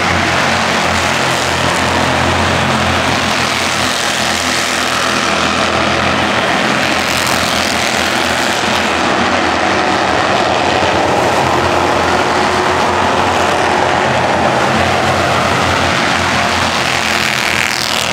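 Race car engines roar loudly around a track.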